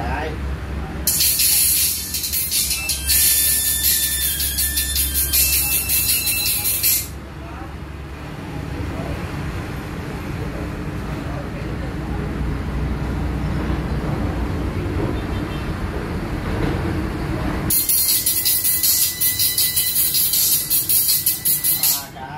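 A small loudspeaker crackles and buzzes as bare wires touch.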